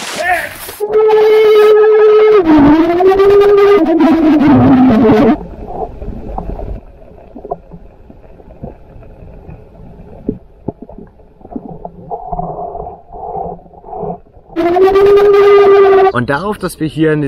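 A young man shouts muffled underwater through bubbles.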